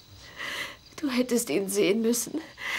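A woman speaks softly and tearfully up close.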